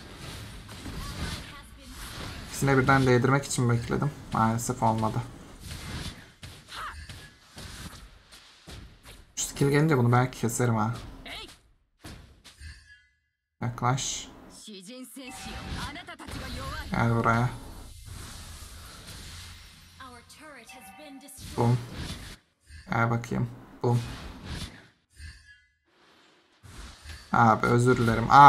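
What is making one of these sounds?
Magic blasts whoosh and crackle in a fast fight.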